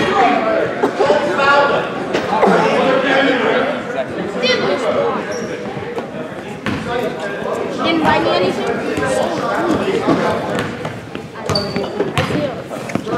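A crowd of young people chatters nearby in a large echoing gym.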